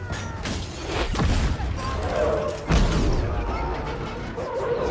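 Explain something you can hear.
An explosion bursts just ahead of a moving truck.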